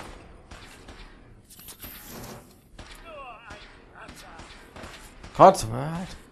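A gun fires single loud shots.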